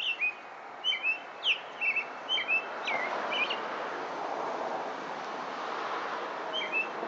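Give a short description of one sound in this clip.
A robin sings loud, clear whistled phrases close by.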